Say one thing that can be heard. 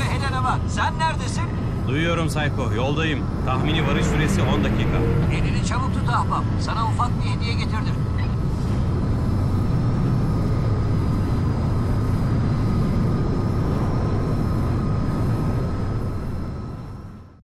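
A jet engine roars steadily, then fades away.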